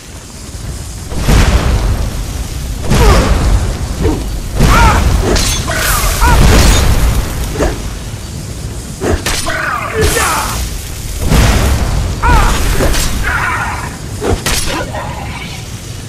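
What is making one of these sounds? Flames roar and crackle in loud bursts.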